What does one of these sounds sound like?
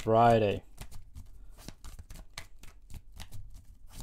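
Cards shuffle in a man's hands.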